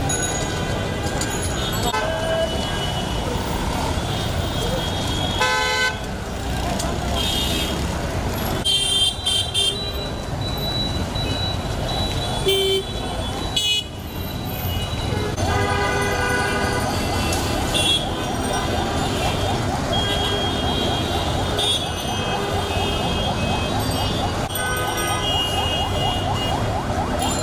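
A large crowd murmurs and chants loudly outdoors.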